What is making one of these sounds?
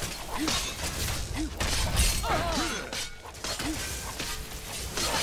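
Weapons strike with sharp impacts.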